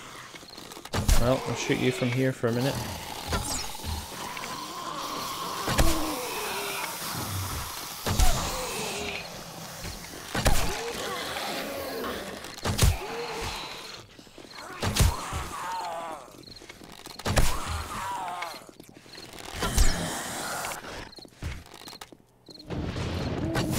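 A wooden club thuds heavily against a body, blow after blow.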